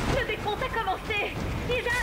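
A gun fires a shot.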